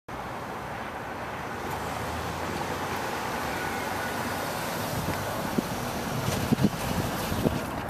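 A sports car engine rumbles as the car rolls slowly closer.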